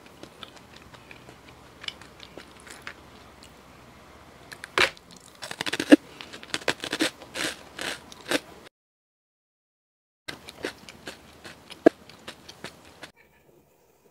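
A young woman crunches and chews food close to a microphone.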